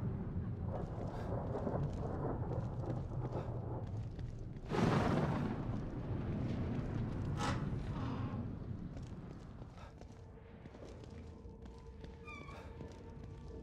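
Footsteps scuff on the ground.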